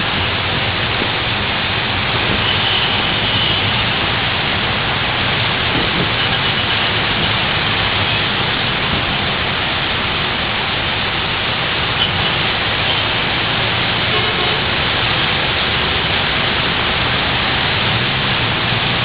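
Traffic rumbles along a wet road.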